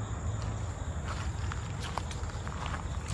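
Footsteps crunch on dry leaves and gravel.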